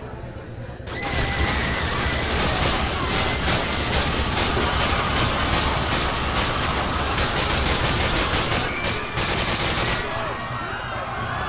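A machine gun fires long, rapid bursts.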